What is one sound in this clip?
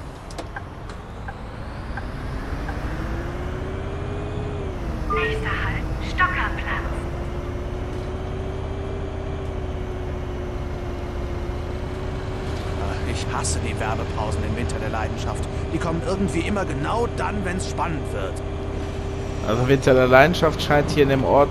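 A bus engine hums and rises in pitch as the bus pulls away and speeds up.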